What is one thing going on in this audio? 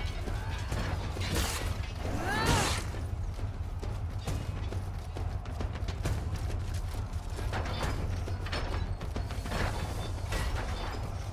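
Armoured footsteps run on stone and dirt.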